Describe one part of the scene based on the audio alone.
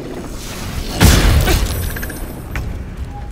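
A magical blade whooshes and rings with a shimmering chime.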